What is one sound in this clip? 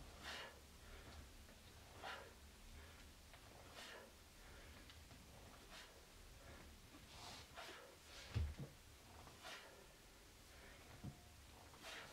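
A man breathes hard while doing push-ups.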